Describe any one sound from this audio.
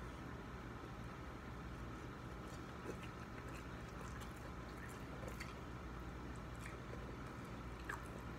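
A young man chews food.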